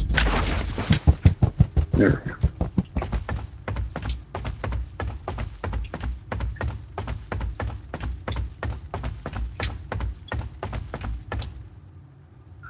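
Footsteps creak and thud on a wooden floor.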